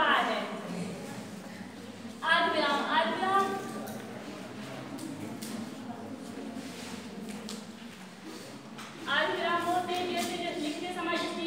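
A young woman speaks clearly in a room with a slight echo.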